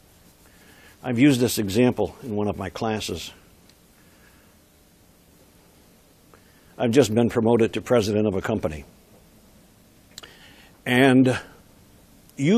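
An older man speaks with animation, pausing between phrases.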